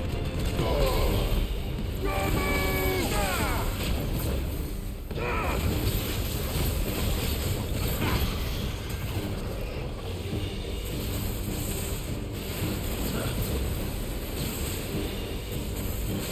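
Fire roars and crackles in bursts.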